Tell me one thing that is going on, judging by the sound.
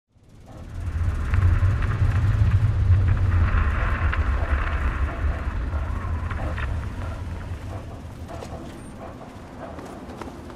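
Footsteps crunch on rubble.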